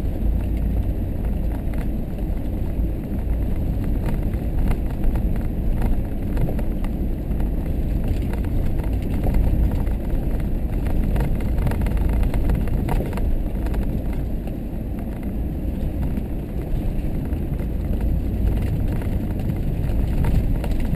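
A vehicle engine rumbles steadily, heard from inside the cab.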